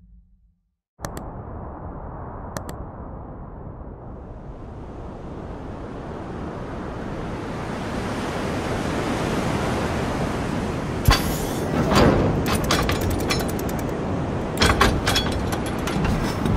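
Strong wind roars across open ground, growing steadily louder.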